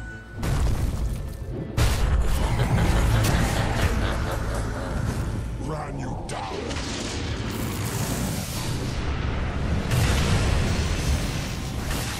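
Game spell effects crackle and boom in a busy fight.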